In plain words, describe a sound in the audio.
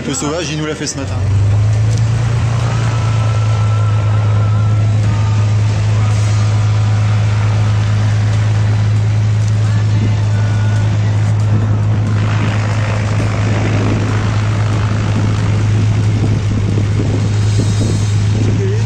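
A small plane's engine idles with a steady low drone.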